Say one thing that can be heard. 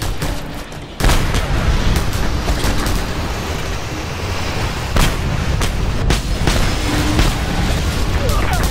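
Explosions boom and rumble one after another.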